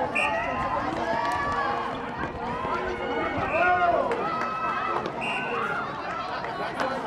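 Several young women shout and call out to each other nearby.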